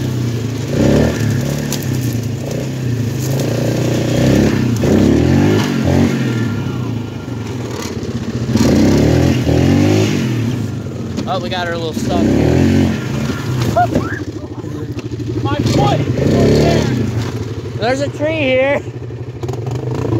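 A small engine revs up and down as an off-road vehicle drives along.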